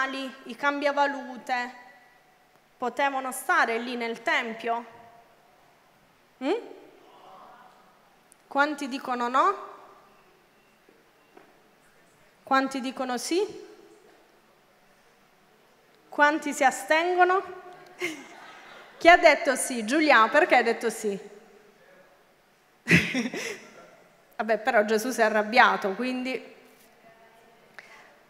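A young woman speaks with animation into a microphone over loudspeakers, in a large echoing hall.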